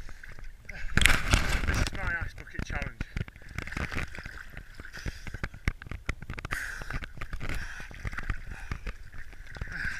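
Water sloshes and splashes around a swimmer.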